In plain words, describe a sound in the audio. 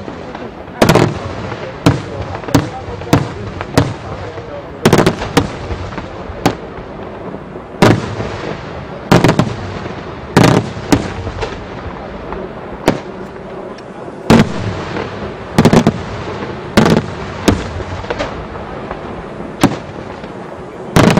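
Firework shells crackle and fizz in the air.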